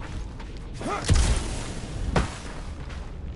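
Rocket boots blast with a short roaring whoosh.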